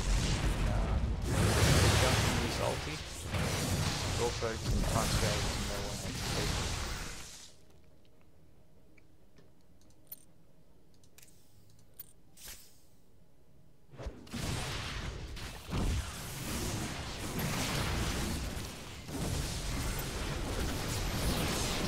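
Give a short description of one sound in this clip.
Spells crackle and blast in a busy fantasy battle.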